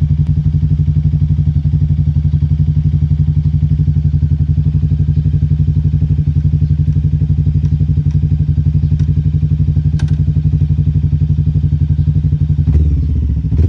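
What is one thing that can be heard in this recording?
A motorcycle engine idles close by with a steady, throbbing rumble.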